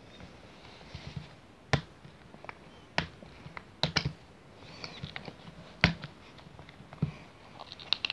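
Plastic lid clips snap open with sharp clicks.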